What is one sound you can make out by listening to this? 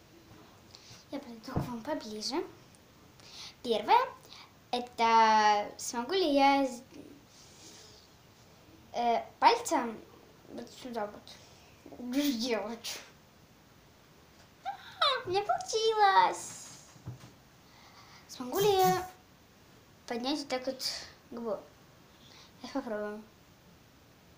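A young girl talks close by with animation, in short bursts.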